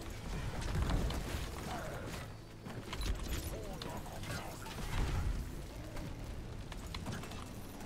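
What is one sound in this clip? Spells and weapons crackle and blast in a fast game battle.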